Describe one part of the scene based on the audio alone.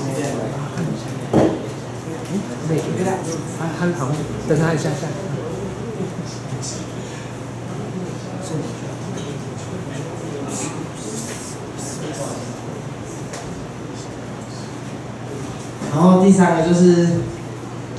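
A young man speaks into a microphone through a loudspeaker in a room with some echo.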